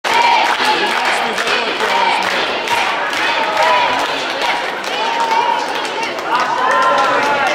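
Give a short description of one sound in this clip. A crowd of spectators cheers and chatters in a large echoing hall.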